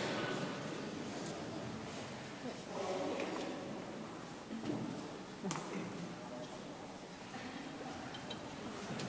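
A mixed choir sings together in a large echoing hall.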